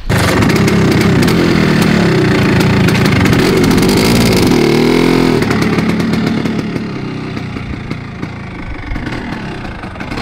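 A scooter engine idles loudly up close and then pulls away.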